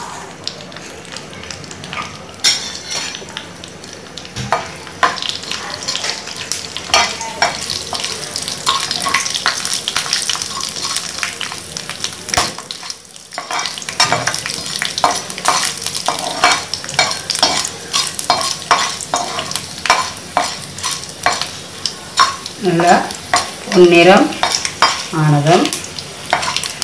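Oil sizzles and crackles in a hot pan.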